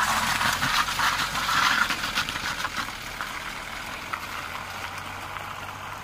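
Tyres crunch over icy ground.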